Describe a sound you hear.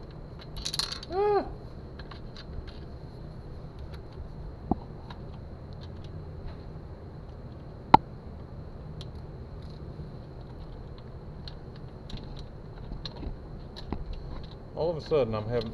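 A plastic panel creaks and clicks as hands press it into place.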